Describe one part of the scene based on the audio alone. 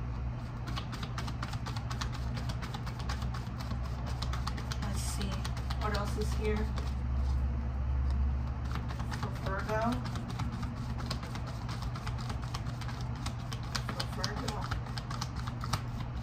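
Cards riffle and flick rapidly as a deck is shuffled by hand.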